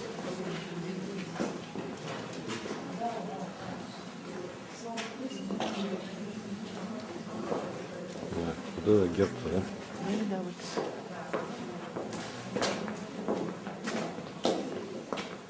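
A crowd of visitors murmurs and talks quietly in an echoing stone hall.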